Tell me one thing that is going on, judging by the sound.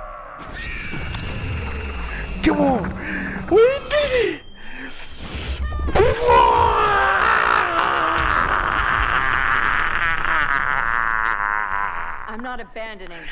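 A man shouts and laughs excitedly close to a microphone.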